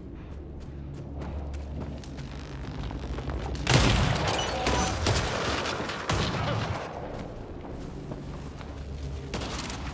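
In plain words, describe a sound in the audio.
Heavy footsteps crunch over rocky ground.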